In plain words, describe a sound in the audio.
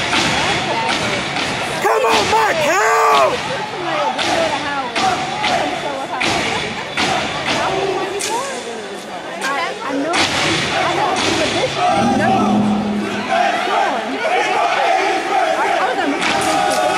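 A troupe of dancers stomps and claps in sharp unison on a stage.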